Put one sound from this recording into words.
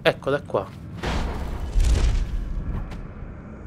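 A deep magical whoosh rushes past and fades.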